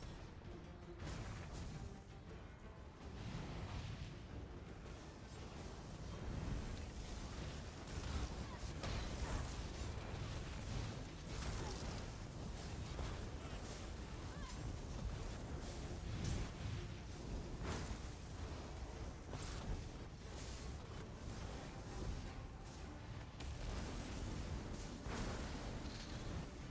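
Magic blasts and explosions crackle and boom in a busy fight.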